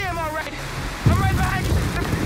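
Thunder cracks sharply.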